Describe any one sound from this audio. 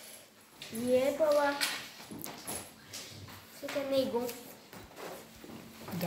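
A young boy reads aloud close by.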